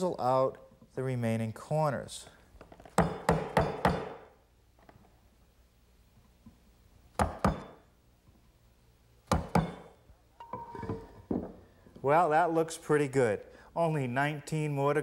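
A man talks calmly and clearly into a microphone.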